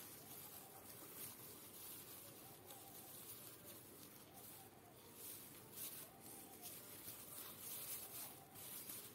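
A sewing machine runs steadily, stitching with a fast rattle.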